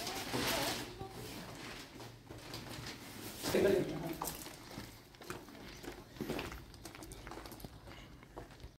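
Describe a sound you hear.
A plastic sack rustles as a woman carries it.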